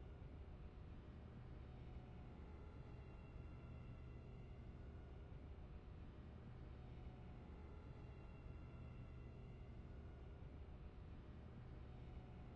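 A deep spaceship engine hum drones steadily.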